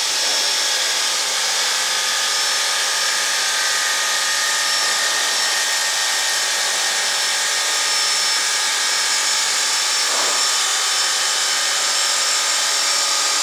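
A wood lathe whirs steadily as a cutter shaves a spinning wooden rod with a high hiss.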